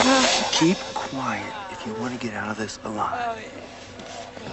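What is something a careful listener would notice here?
A man whispers urgently close by.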